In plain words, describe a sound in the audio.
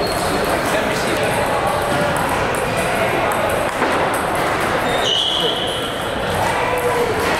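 Many people murmur and call out in the background.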